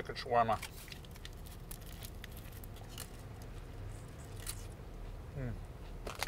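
A man chews and bites into food.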